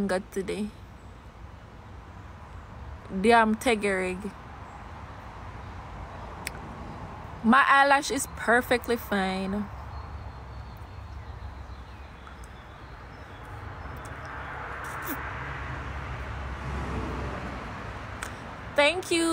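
A young woman speaks casually in short bursts, close to a phone microphone.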